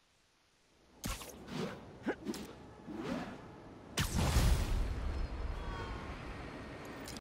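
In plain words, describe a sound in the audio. Wind rushes loudly past during a fast swing through the air.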